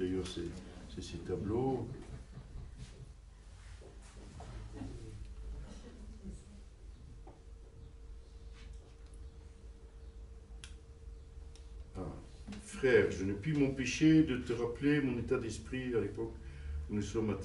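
An older man reads aloud calmly into a microphone.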